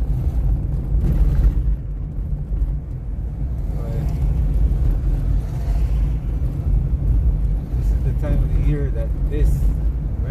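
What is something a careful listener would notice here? A car engine hums and rumbles steadily from inside the car as it drives.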